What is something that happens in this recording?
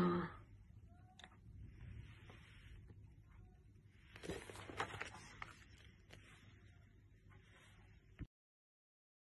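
A man speaks quietly and muffled through a mask, close by.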